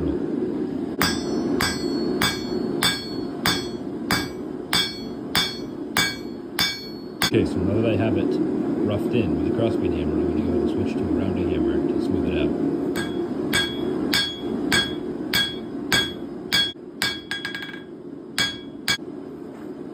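A hammer rings sharply on an anvil in quick, regular blows.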